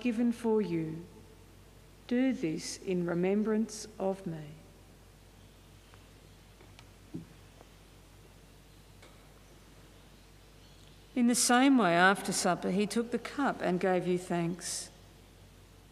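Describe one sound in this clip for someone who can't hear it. An elderly person speaks slowly and solemnly into a microphone.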